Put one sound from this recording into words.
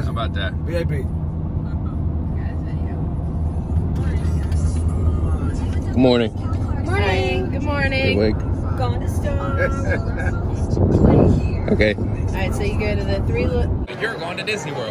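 A car engine hums and tyres rumble on a highway.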